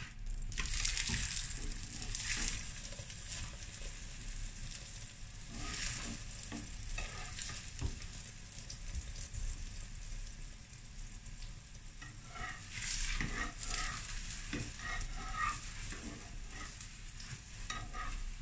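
A metal spatula scrapes against a griddle.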